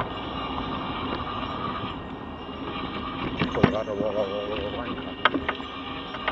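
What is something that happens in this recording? A van drives slowly along a street.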